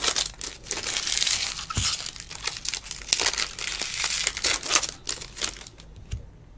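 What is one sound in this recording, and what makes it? A foil wrapper crinkles and rustles close by.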